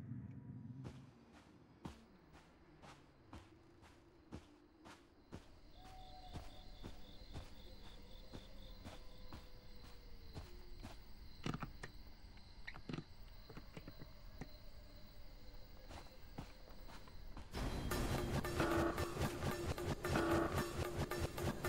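Heavy footsteps thud at a steady pace.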